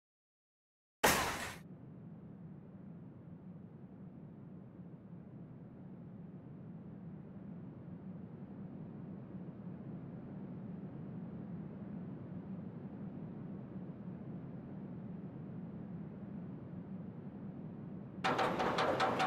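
A roller coaster train rumbles low along its track.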